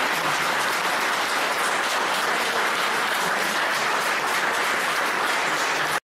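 A small woodwind ensemble plays together in an echoing room.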